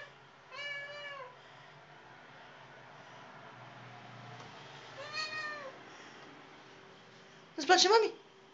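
A cat meows loudly, several times.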